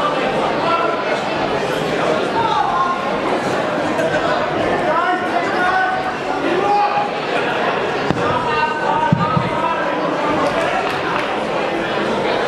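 A crowd of men and women chatters and calls out loudly in a large hall.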